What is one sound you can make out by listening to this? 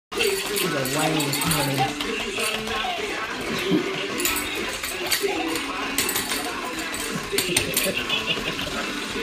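Puppies' claws and paws patter on a hard floor.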